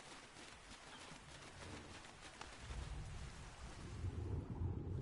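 A figure splashes through shallow surf.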